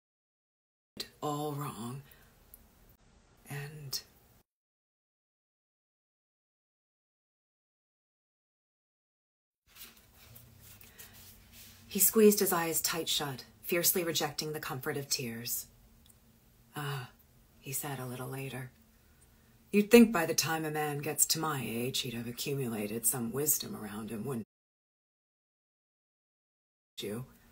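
A woman reads aloud calmly, close to a phone microphone.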